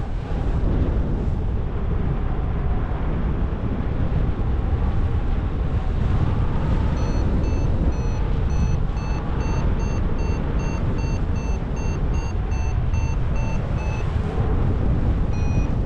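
Strong wind rushes and buffets steadily outdoors.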